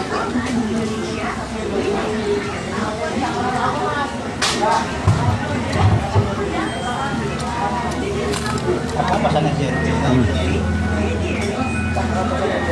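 A young man chews food close by.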